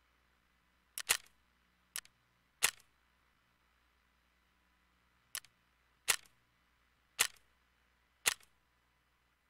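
Sharp clicks sound a few times, each with a short ring.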